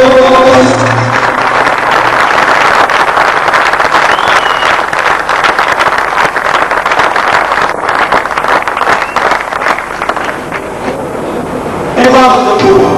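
An audience claps loudly in a large hall.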